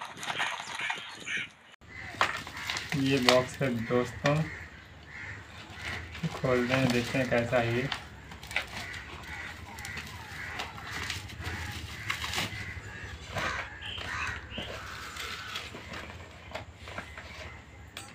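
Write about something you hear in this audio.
Cardboard scrapes and taps as a box is handled.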